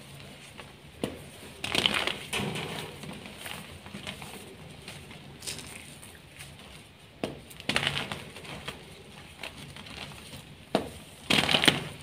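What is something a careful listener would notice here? Hands crumble and crush dry chalky blocks with sharp snaps and gritty crunches.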